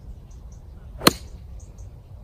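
A golf club strikes a ball with a sharp crack.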